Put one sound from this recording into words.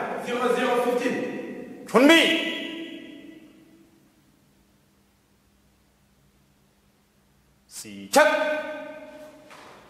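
A man shouts loudly in an echoing hall.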